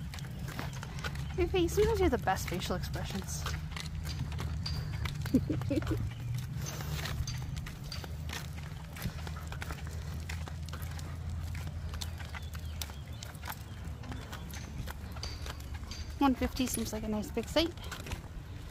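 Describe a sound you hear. Wagon wheels rumble steadily over pavement.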